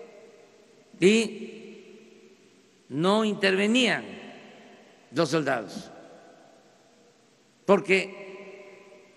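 An elderly man speaks with emphasis into a microphone in short bursts, echoing in a large space.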